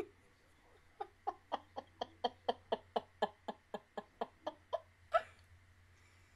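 A young woman giggles in quick, rapid bursts close to a microphone.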